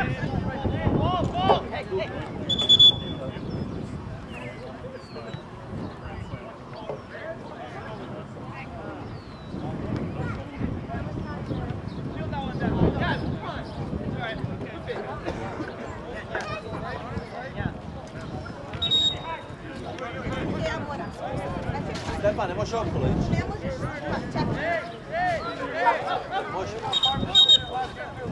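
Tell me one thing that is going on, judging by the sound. Young men shout and call to each other outdoors.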